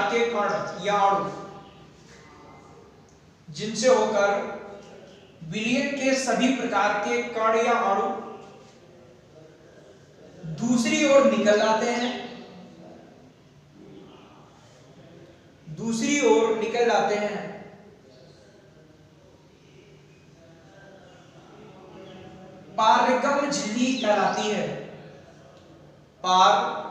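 A man speaks calmly in bursts with pauses, close by, in a slightly echoing room.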